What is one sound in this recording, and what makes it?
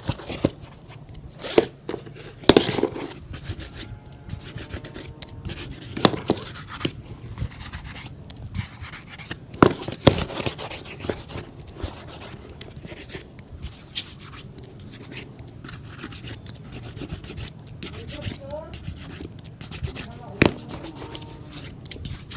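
A fingertip dabs into a tin of polish with soft taps.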